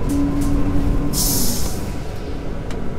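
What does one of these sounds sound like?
Bus brakes hiss as the bus stops.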